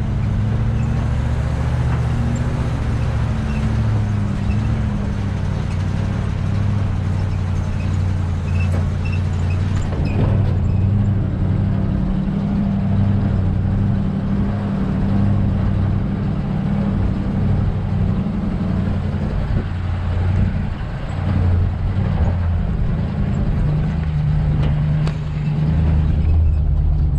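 Tyres crunch over gravel and dirt.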